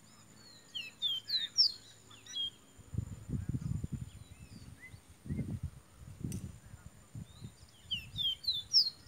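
A caboclinho seedeater sings outdoors in short whistled phrases.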